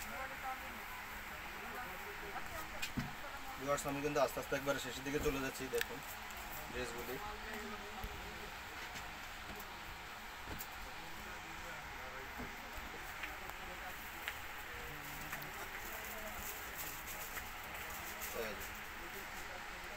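Fabric rustles and flaps as it is unfolded and spread out.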